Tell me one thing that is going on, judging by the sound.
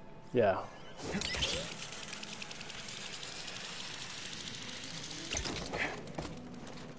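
A cable whirs as a figure slides down a zip line.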